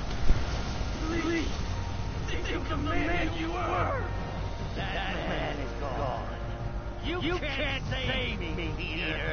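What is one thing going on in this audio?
A man speaks in a low, menacing voice.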